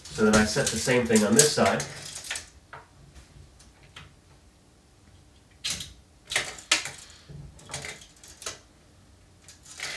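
A tape measure clicks and rattles.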